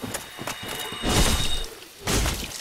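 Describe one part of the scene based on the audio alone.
A sword strikes an enemy with a heavy thud.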